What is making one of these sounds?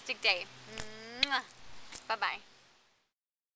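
A woman speaks warmly and close by.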